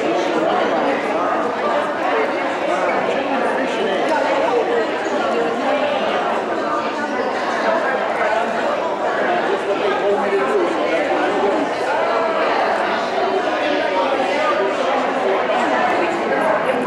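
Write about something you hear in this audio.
Playing cards snap and slap onto a table.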